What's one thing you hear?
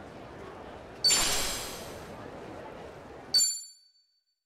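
A bright electronic chime rings out twice.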